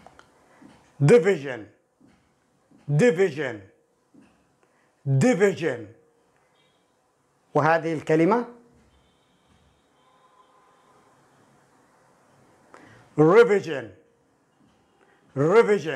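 A man speaks clearly and slowly into a close microphone, in short separate phrases with pauses between.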